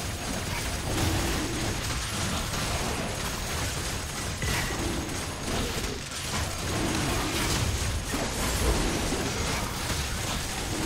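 Weapons clash and strike repeatedly in a fierce fight.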